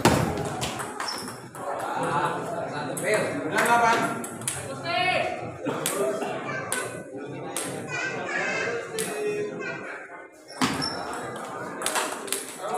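A table tennis ball clicks sharply back and forth off paddles and the table.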